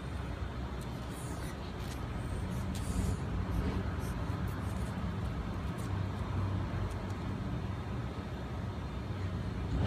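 Two small dogs growl playfully while tugging at a rubber toy.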